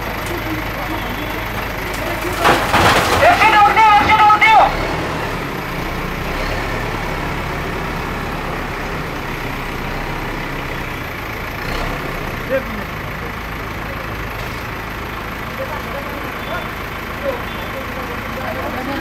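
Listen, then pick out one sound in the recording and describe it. A heavy loader engine rumbles steadily.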